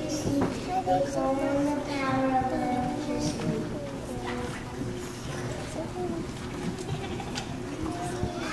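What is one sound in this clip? Young children sing together in a roomy hall.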